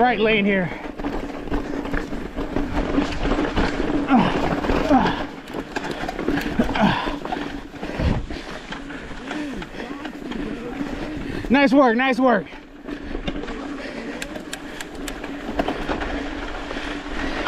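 A bike's frame and chain clatter over bumps.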